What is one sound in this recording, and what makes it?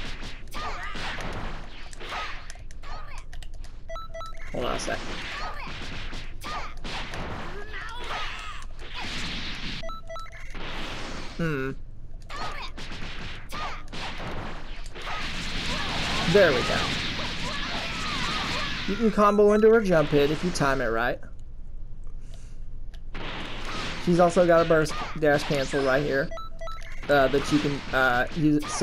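Punches and kicks land with sharp thuds in quick succession.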